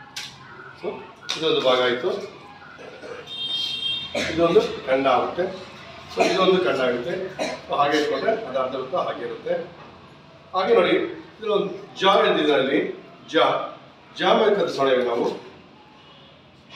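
A middle-aged man speaks calmly nearby, as if explaining.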